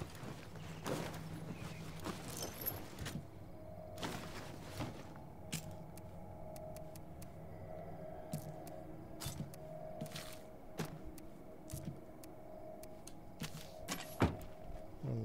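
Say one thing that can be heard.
Menu clicks tick sharply, one after another.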